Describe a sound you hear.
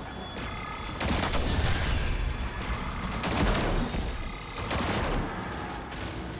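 Energy blasts explode with booming bursts.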